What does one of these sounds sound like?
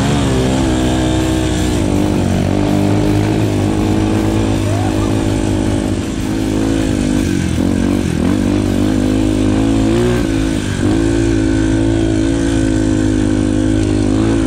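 A dirt bike engine revs loudly up close, its pitch rising and falling with the throttle.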